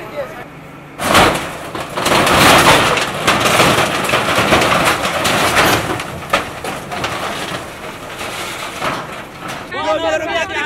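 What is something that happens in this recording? Corrugated metal sheets crash and scrape as an excavator knocks down a shack.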